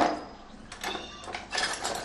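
Metal tools clink and scrape in a toolbox.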